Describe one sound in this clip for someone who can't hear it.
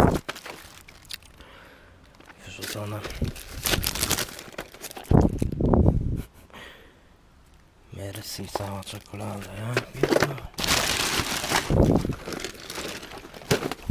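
A cardboard box scrapes and taps as it is handled.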